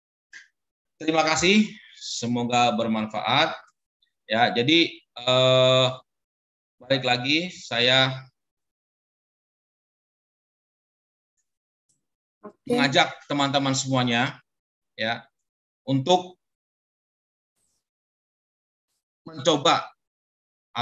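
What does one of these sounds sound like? A middle-aged man speaks calmly through an online call, with pauses.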